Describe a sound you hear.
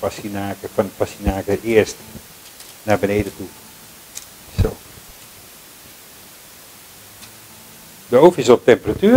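Vegetable sticks rustle and clatter softly on a baking tray.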